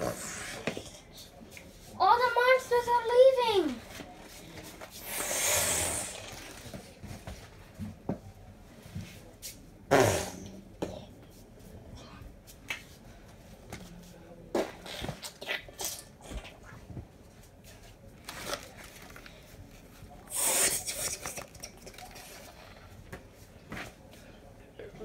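A wooden stick knocks and scrapes against soft furniture.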